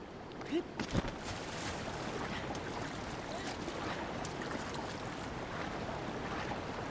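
Water splashes as a figure swims.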